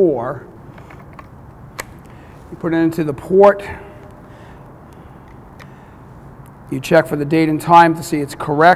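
A man speaks calmly and clearly close by.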